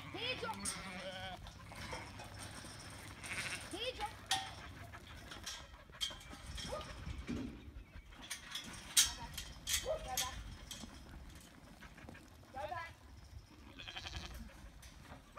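Sheep bleat on and off.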